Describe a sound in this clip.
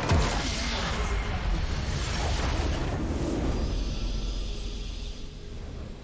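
A huge explosion booms and rumbles, then fades.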